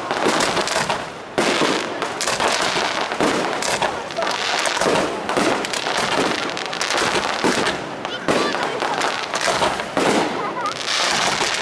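Fireworks burst and crackle rapidly overhead.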